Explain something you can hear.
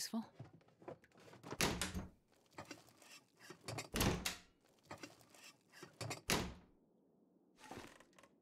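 Someone rummages through a wooden cupboard, with thuds and rustling in bursts.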